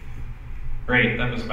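A man on a panel speaks into a microphone.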